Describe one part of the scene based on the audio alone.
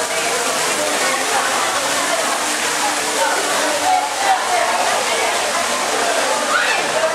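A crowd of people chatters and shouts in the distance.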